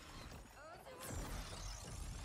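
A sharp magical blast whooshes and crackles.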